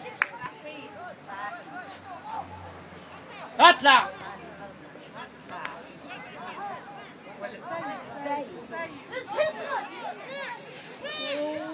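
Young players shout and call out to each other across an open outdoor field.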